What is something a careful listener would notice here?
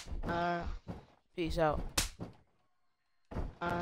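A hand chops hard against a bare chest with a sharp slap.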